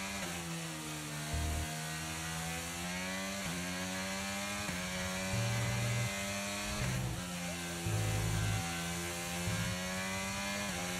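A racing car engine whines at high revs, its pitch climbing and then dropping sharply with each gear change.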